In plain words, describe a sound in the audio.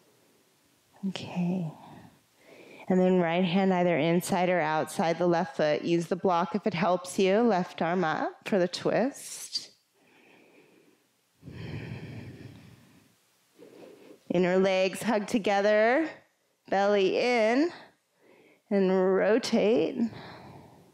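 A woman speaks calmly and clearly, giving instructions.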